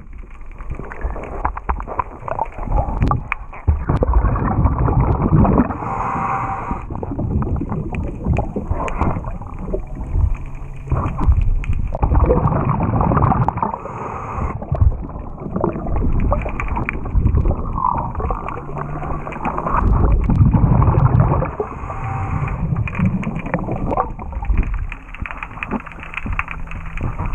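Water rushes and gurgles, heard muffled from underwater.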